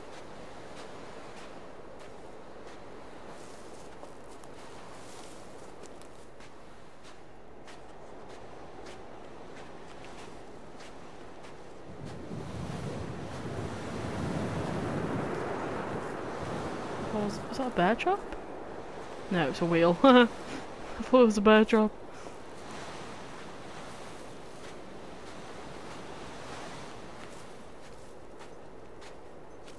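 Wind blows steadily through tall grass outdoors.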